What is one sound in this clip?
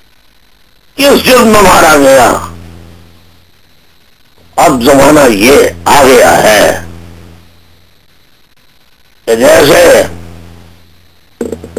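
A man speaks loudly in short bursts over a broadcast link, with long pauses between.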